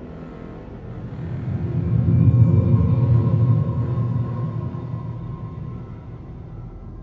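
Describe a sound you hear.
A deep rumble swells and slowly fades.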